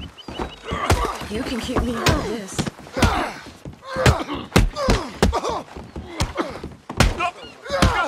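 Fists thud in a scuffle on wooden boards.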